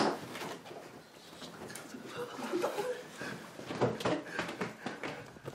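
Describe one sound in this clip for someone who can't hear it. Young men laugh and chatter together close by.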